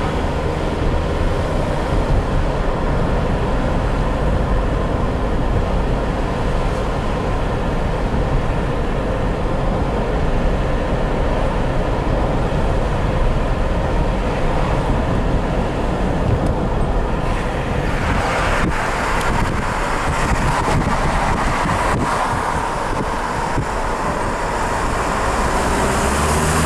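A car's tyres roll on asphalt, heard from inside the car.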